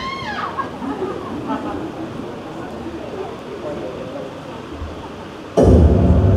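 Young women chat and laugh together in a large echoing hall.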